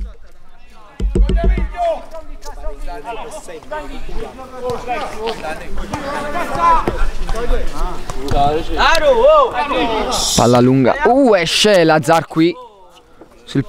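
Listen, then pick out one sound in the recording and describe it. Men shout and call out across an outdoor pitch.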